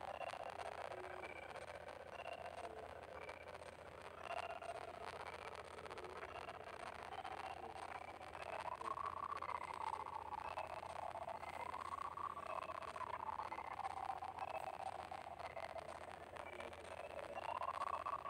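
Short game chimes ring out again and again.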